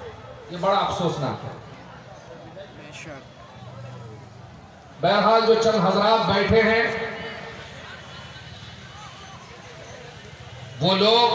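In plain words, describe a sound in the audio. A man chants loudly in bursts through a microphone and loudspeakers.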